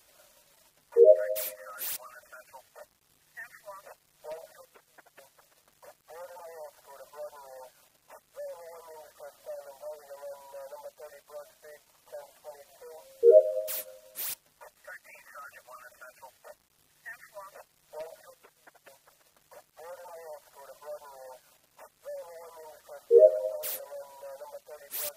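A bright electronic chime rings out several times.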